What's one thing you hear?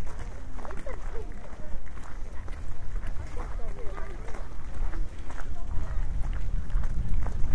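Footsteps scuff on pavement nearby.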